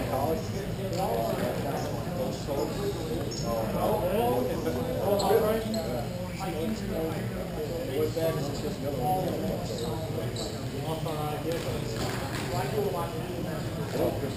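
Skates scrape and hiss across ice in a large echoing hall.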